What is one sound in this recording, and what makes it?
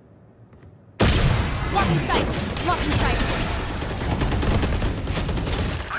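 A stun grenade bursts with a loud, ringing blast.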